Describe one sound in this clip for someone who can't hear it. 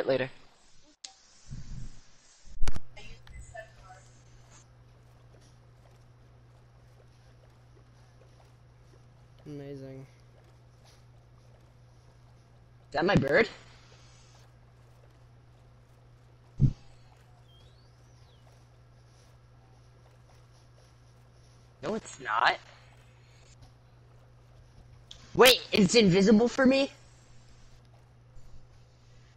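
Oars paddle softly through water.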